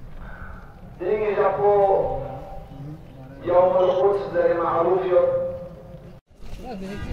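A man speaks over a loudspeaker with strong emphasis, echoing outdoors.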